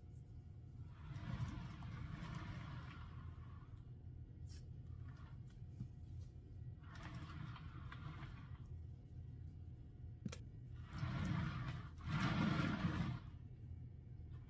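A board slides and rubs over a plastic sheet.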